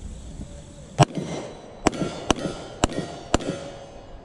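A handgun fires several quick shots outdoors, each one cracking sharply.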